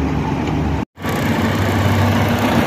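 A diesel tracked excavator's engine runs.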